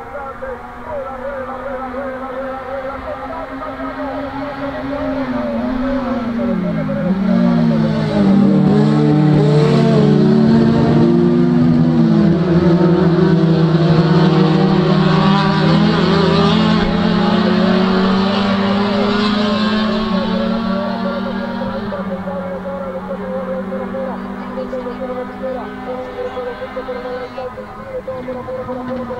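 Several racing saloon car engines roar at full throttle.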